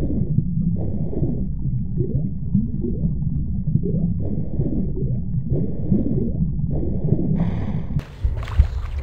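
Water bubbles and gurgles underwater.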